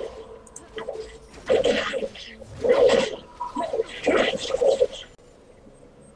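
Magic spells burst and clash in a fast fight.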